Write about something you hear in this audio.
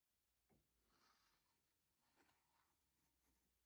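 Paper rustles and slides on a hard surface.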